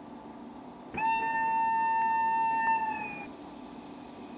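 A locomotive horn blares loudly for about two seconds.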